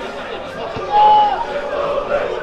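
A referee's whistle blows once, briefly.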